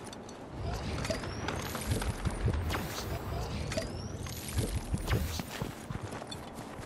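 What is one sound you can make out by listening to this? A treasure chest hums and jingles with shimmering chimes.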